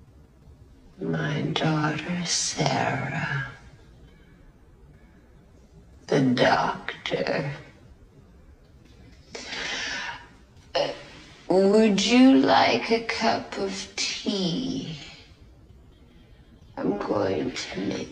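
An elderly woman speaks calmly and hesitantly at close range.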